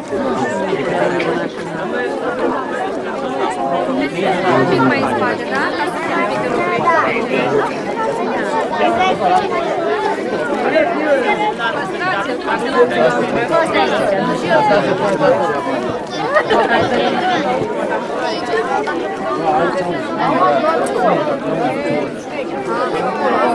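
A crowd of adults and children chatters all around outdoors.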